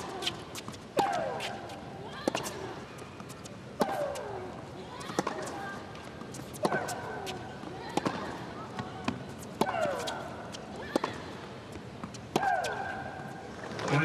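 Shoes squeak on a hard court.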